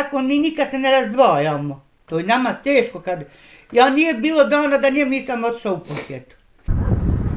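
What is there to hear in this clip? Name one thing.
An elderly woman talks with animation close by.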